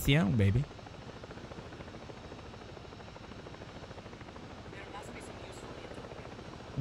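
A helicopter's rotor thumps steadily and quickly.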